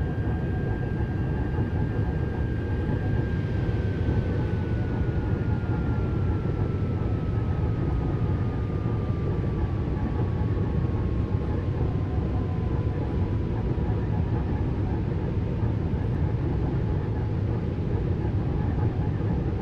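An electric motor whines and slowly falls in pitch.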